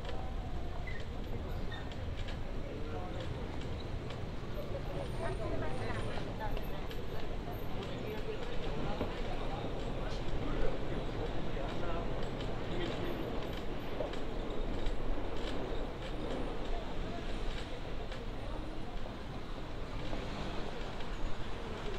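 A crowd murmurs in a busy street.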